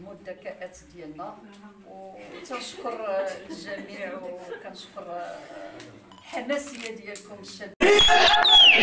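A middle-aged woman speaks cheerfully nearby.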